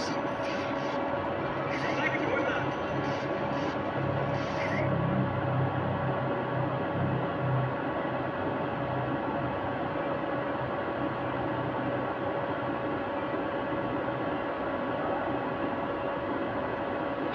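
A game console hums steadily.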